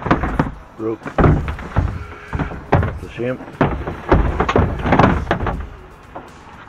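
A plastic tub knocks and rattles against the inside of a bin.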